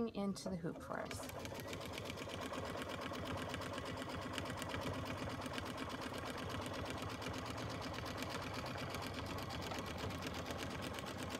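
An embroidery machine stitches rapidly with a steady, busy whirring.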